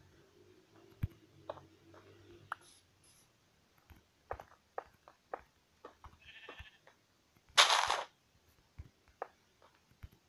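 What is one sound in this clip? Stone blocks are placed with short dull knocks.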